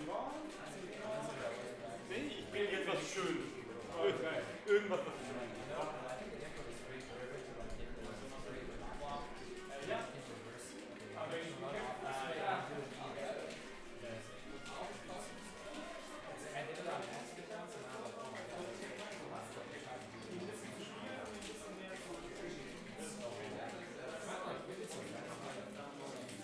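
Several young men talk casually nearby in a small room.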